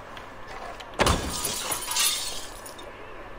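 Feet land with a heavy thud on wooden floorboards.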